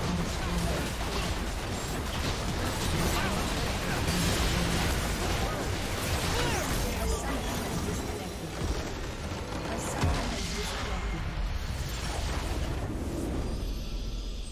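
Game spells and attacks crackle and clash in a busy fight.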